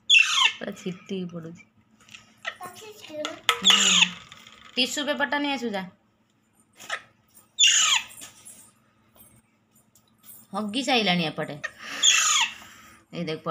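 Young parrots squawk and screech loudly, close by.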